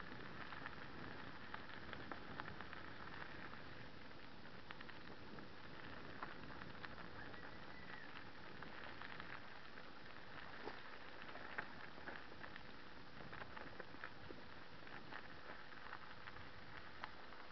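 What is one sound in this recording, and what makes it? Gravel crunches under paws and bicycle tyres.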